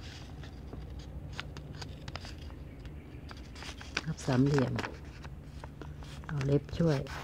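Paper crinkles and rustles as it is folded.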